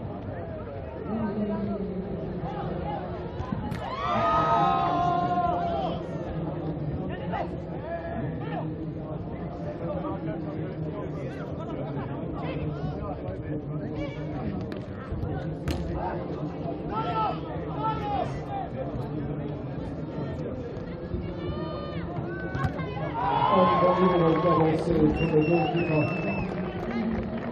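A crowd murmurs and cheers in the open air.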